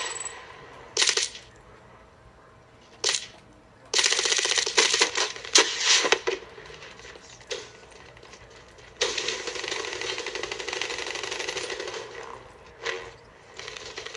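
Rapid gunfire crackles in short and long bursts.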